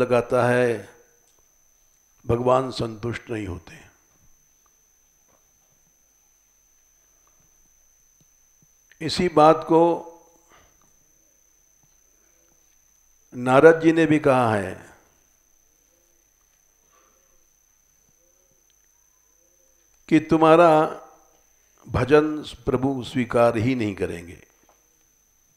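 An elderly man chants slowly into a close microphone, in short phrases with long pauses.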